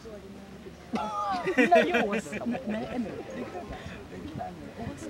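A young man and a young woman laugh loudly together.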